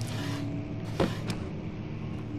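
A wooden drawer slides shut with a knock.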